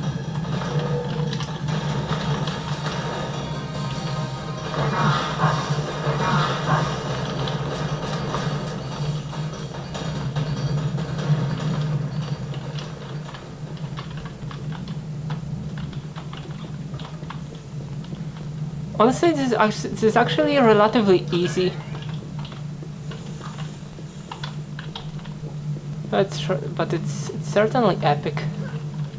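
A low steady hum plays through small desktop speakers.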